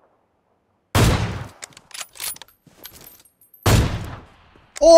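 A rifle fires two sharp shots.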